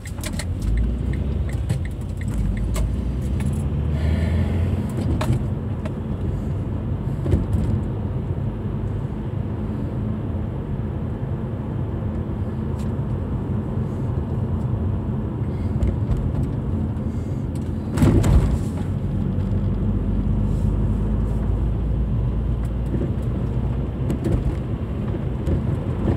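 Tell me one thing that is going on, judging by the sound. Tyres rumble steadily on the road.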